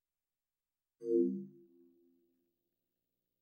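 A low, soft startup chime sounds briefly and fades.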